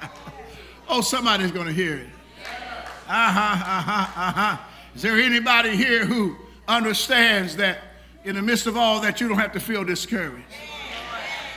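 A man preaches loudly and with passion through a microphone in an echoing hall.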